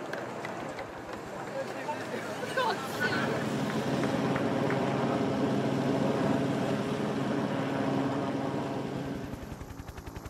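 Car engines hum as vehicles drive slowly past.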